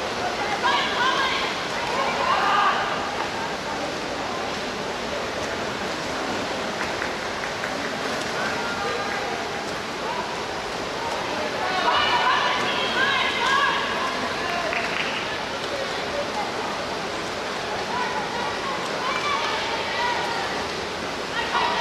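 Swimmers splash and churn the water steadily.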